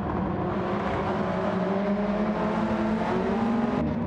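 Tyres squeal through a corner.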